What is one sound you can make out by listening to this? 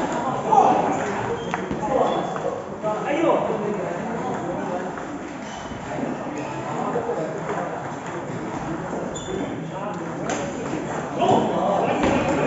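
A table tennis ball clicks against paddles and bounces on a table.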